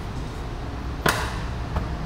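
A scooter seat lid thumps shut.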